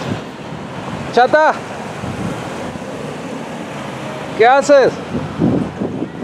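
A car drives past on the street.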